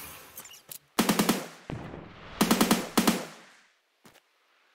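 Rapid gunshots fire in quick bursts and echo away.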